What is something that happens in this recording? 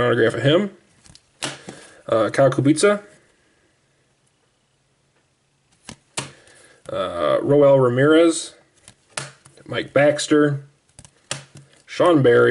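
Plastic card holders tap and rustle as they are handled.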